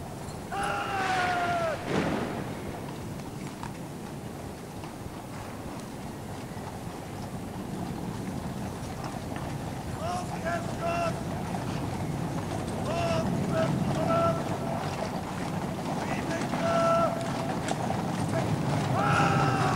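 A large crowd murmurs in the distance outdoors.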